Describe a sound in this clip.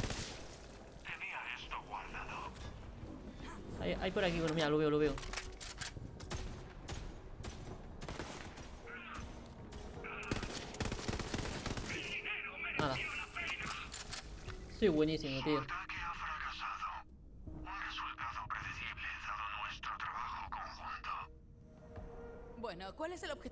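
A man talks with animation, close to a headset microphone.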